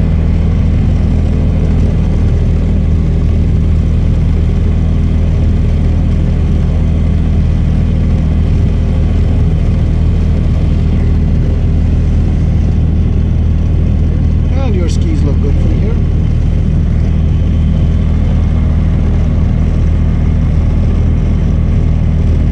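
A small propeller plane's engine drones loudly and steadily close by.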